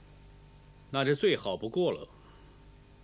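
A man speaks firmly and briefly.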